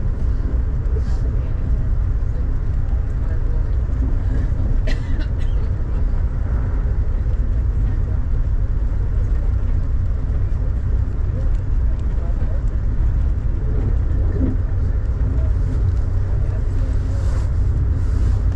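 Raindrops patter against a window.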